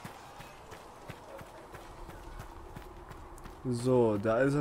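Footsteps crunch quickly over snow and gravel.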